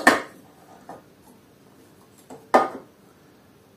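A metal square clicks against a metal table.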